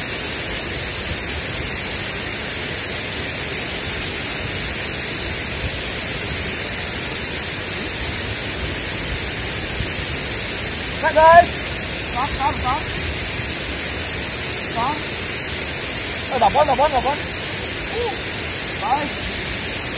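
Water rushes and splashes steadily nearby.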